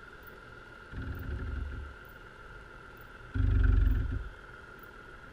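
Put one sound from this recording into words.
A heavy object thuds dully into the seabed underwater.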